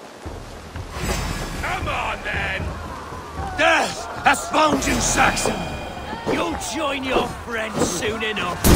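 A man speaks in a deep, threatening voice.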